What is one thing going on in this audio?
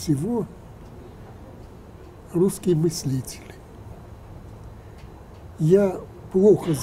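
An elderly man speaks slowly and calmly into a microphone nearby, with pauses.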